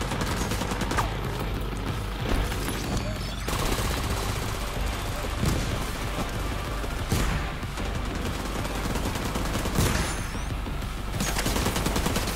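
Gunshots crack and echo in sharp bursts.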